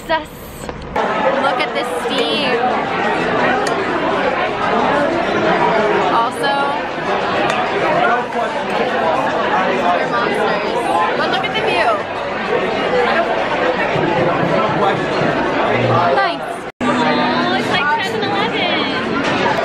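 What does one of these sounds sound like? A crowd of people chatters in a busy room.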